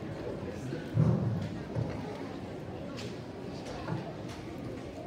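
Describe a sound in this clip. A choir of children sings together in an echoing hall.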